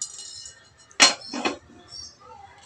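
A metal lid clanks onto a cooking pot.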